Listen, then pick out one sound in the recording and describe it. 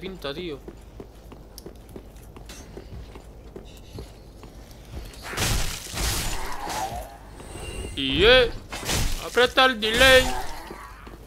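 Heavy armour clanks and scrapes as a knight runs and rolls over stone.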